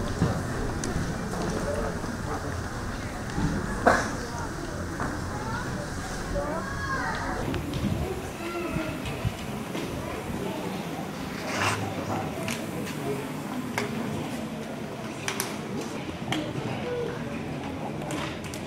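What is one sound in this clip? An audience murmurs and chatters in a large room.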